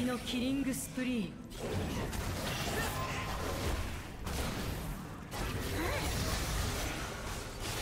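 Magic spells whoosh and crackle during a fast fight.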